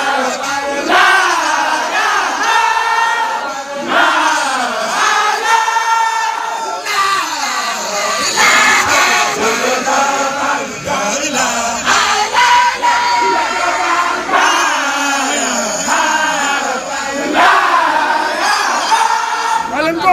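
A crowd of men sing and chant together.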